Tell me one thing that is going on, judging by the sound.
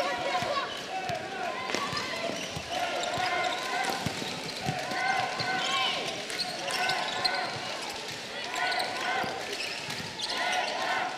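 A large crowd murmurs in a big echoing hall.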